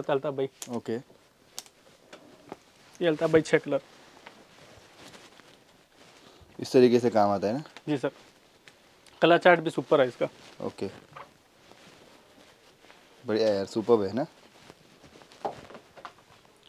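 A man speaks calmly and close by in short phrases.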